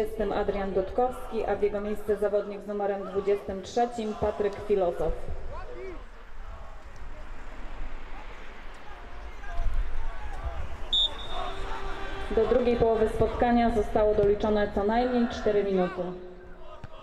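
A crowd of spectators chants and sings loudly outdoors.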